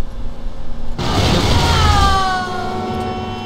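Car tyres screech briefly.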